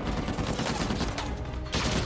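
Objects burst and clatter as bullets hit them.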